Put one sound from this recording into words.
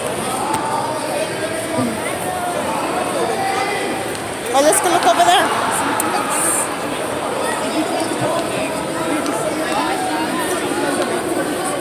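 A crowd chatters all around in a large echoing hall.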